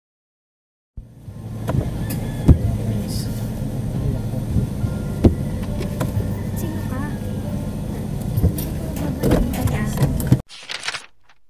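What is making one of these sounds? A car engine rumbles steadily while driving along a road.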